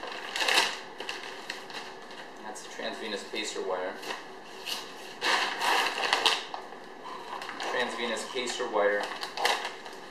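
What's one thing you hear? Plastic packaging crinkles and rustles as it is unwrapped.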